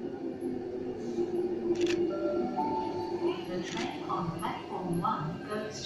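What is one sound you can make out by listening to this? An electric suburban train pulls into an echoing underground station, its motors whining as it slows.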